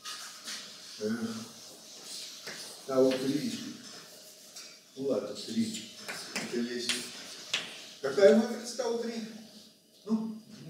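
An elderly man speaks calmly in a room with some echo.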